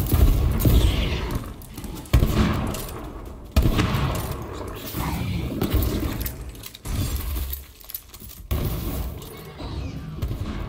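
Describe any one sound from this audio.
Guns fire in bursts with loud booming blasts.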